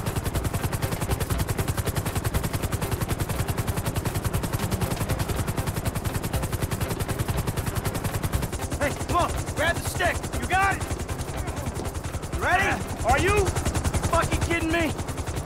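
Helicopter rotor blades chop rapidly and steadily.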